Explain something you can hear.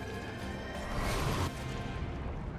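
An explosion roars and rumbles.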